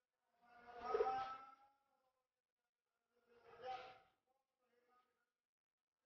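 An elderly man prays aloud in a chanting voice.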